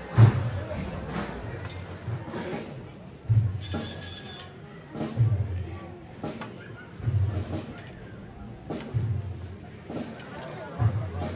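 Many footsteps of a slow procession tread on a street in steady, measured beats.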